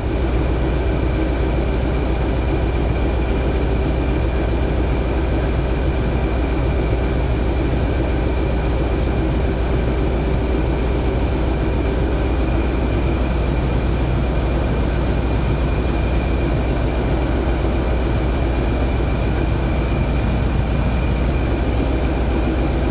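A diesel locomotive engine rumbles and drones steadily, echoing in a tunnel.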